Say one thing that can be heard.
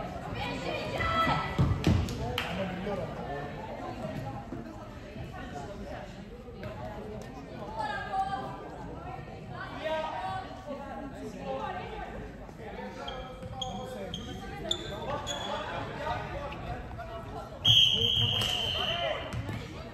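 Young women shout to each other across a large echoing hall.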